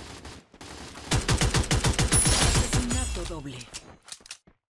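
Rapid gunfire rattles in a fast burst.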